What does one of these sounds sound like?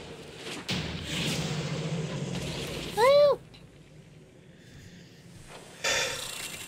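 Game battle effects clash and ring out.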